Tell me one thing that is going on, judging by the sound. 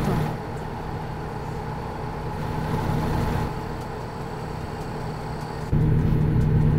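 A truck's diesel engine hums steadily.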